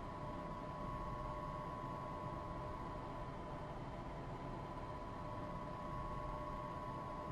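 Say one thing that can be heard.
A train hums steadily with a low rumble and a high whine while standing still.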